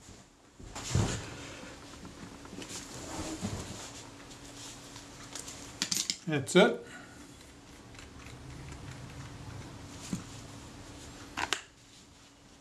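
Small metal parts click and scrape as a lens is unscrewed by hand.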